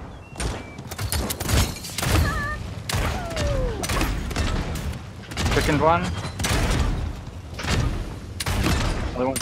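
A gun fires in quick bursts of shots.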